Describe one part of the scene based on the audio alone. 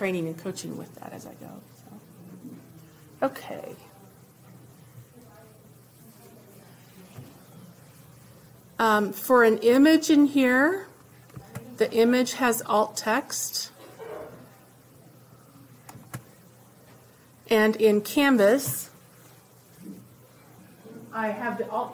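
A woman speaks calmly into a close microphone, in bursts with pauses.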